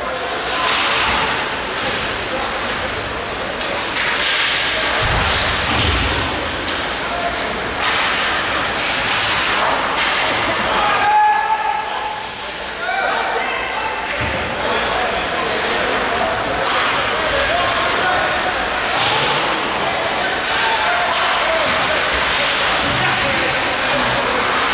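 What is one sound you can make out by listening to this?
Skates scrape and hiss on ice.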